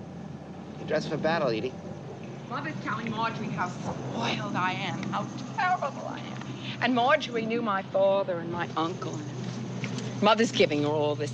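A woman calls out outdoors.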